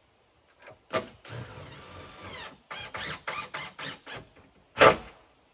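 A power drill whirs in short bursts close by.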